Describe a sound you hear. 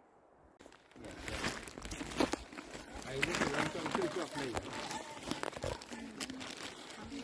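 A child talks with animation nearby outdoors.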